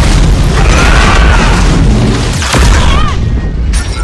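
An explosion booms.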